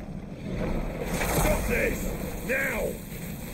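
A man shouts urgently.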